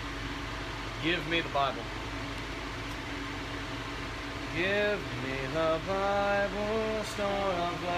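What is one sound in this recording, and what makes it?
A young man reads aloud nearby.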